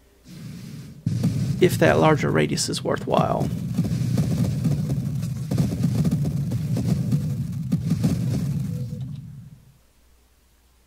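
Laser shots and explosions boom and crackle in a video game.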